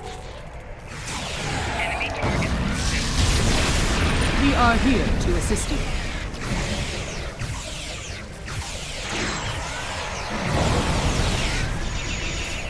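A loud blast of steam hisses and roars.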